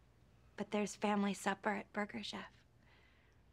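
A young woman speaks clearly and calmly, close by.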